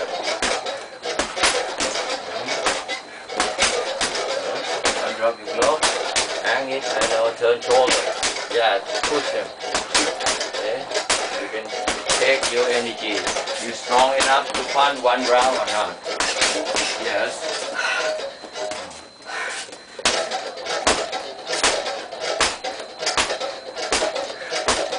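Gloved punches thud rapidly against a heavy punching bag.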